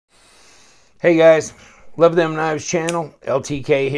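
A folding knife blade snaps open with a click.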